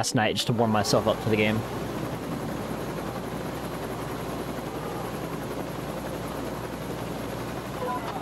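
A helicopter engine and rotor drone steadily.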